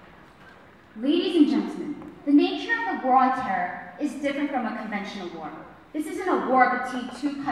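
A young woman speaks into a microphone through loudspeakers in a large hall.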